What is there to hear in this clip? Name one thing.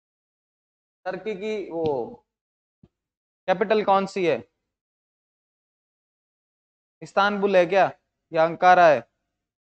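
A young man speaks calmly into a close microphone, in short phrases with pauses.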